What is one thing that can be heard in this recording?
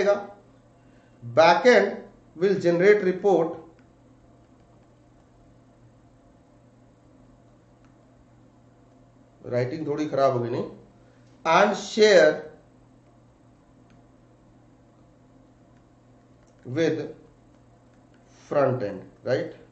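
A man speaks calmly and close to a headset microphone, in short phrases with long pauses.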